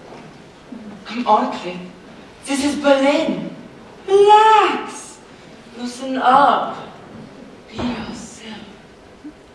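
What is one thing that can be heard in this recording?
A young woman speaks with feeling on a stage, heard from across a large echoing hall.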